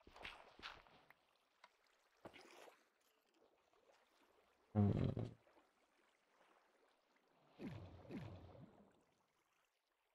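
Water splashes and bubbles.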